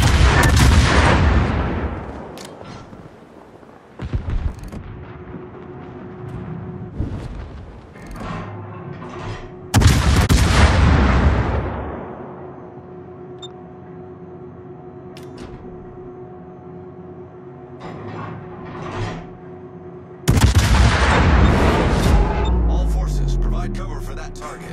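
Heavy naval guns fire in loud booming salvos that rumble away.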